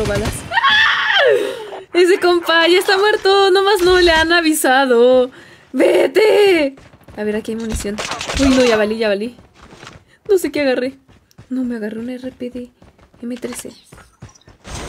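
A young woman talks with animation close to a headset microphone.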